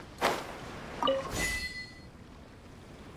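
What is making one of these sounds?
A short chime rings out.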